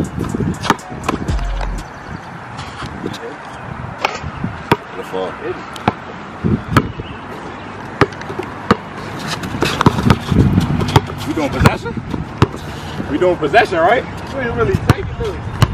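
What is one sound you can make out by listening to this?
A basketball bounces sharply on an outdoor court.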